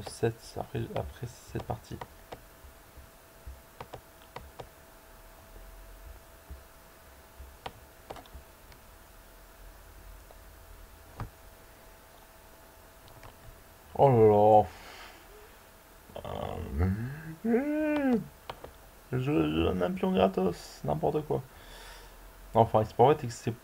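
Soft clicks sound as chess pieces are moved in a game.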